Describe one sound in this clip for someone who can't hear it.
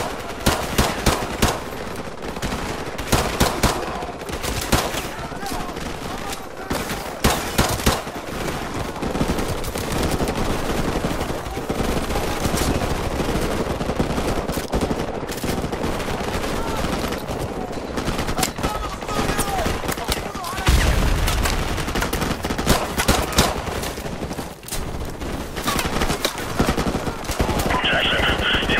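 Rifles fire in rapid bursts close by.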